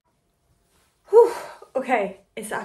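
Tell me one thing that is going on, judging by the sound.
A young woman's voice sounds out loudly for a moment, close by.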